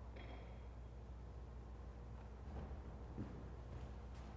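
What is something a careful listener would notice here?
Footsteps thud softly across a wooden floor.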